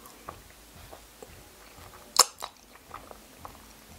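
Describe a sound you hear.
A young woman slurps and chews food close by.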